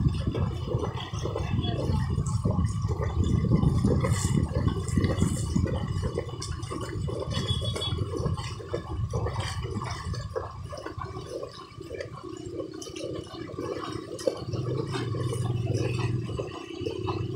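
Water splashes and churns around the wheels.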